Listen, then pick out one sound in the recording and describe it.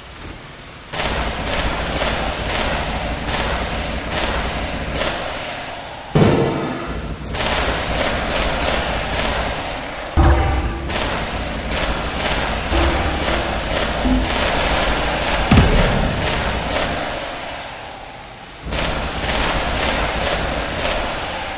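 Towers fire rapid electric zapping shots.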